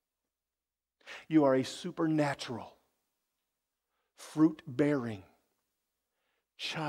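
A man speaks with animation through a microphone, in short bursts.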